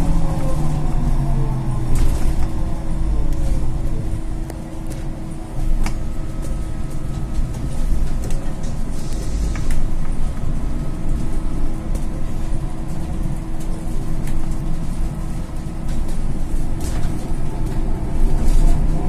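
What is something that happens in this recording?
A bus engine hums and whines steadily from inside the cab.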